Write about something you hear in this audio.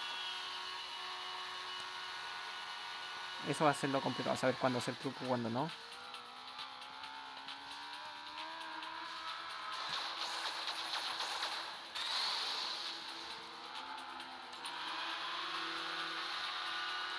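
A jet ski engine whines and revs, rising and falling in pitch.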